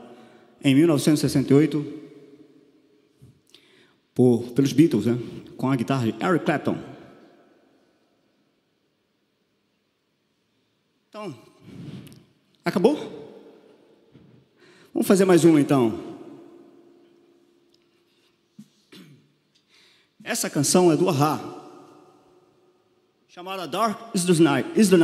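A man sings loudly through a microphone in short phrases with pauses between them.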